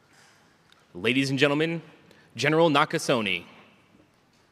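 A man speaks loudly over a loudspeaker in a large echoing hall.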